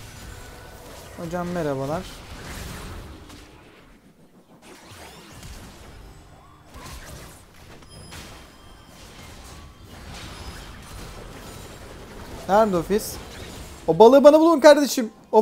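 Game spell effects whoosh, zap and crackle in quick bursts.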